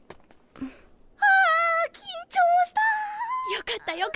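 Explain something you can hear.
A young girl speaks with relief.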